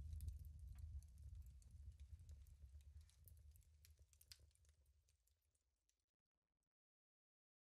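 Water trickles and splashes into a pool, fading away.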